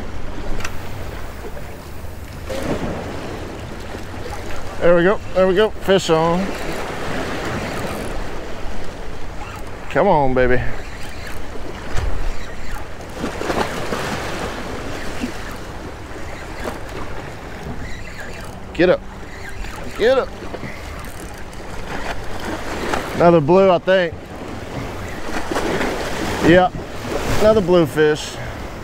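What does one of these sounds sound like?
Small waves splash against rocks.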